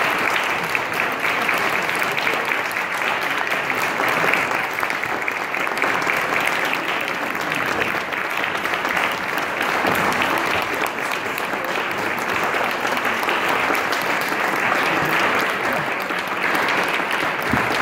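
A choir of young children sings together in a large echoing hall.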